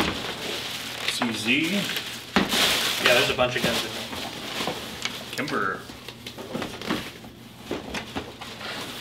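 Paper and plastic wrapping rustle and crinkle.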